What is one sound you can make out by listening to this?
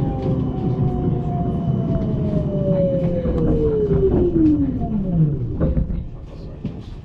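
A tram's motor whines lower and lower as the tram slows to a stop.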